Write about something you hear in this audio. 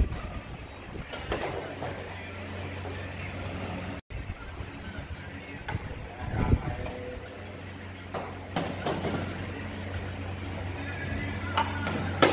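Metal tools clank on a steel floor plate.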